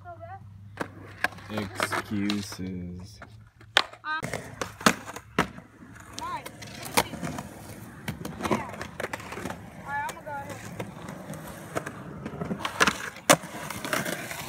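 Skateboard wheels roll over concrete.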